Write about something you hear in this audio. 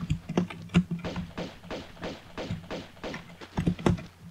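Running footsteps thud on wooden boards.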